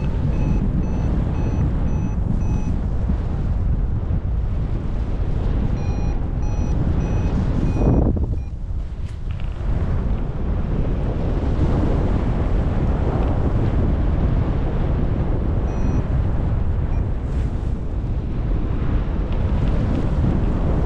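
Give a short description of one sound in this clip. Wind rushes loudly past in flight.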